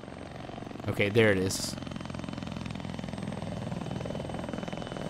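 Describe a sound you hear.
A helicopter's rotors thud and whine overhead, growing louder.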